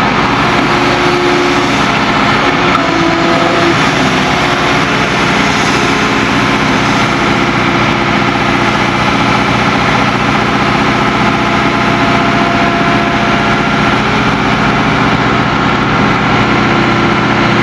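An excavator's diesel engine drones steadily at a distance.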